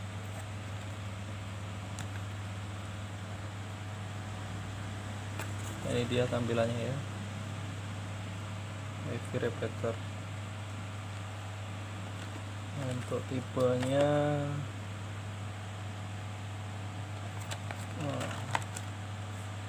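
Hands turn a cardboard box over, rustling softly.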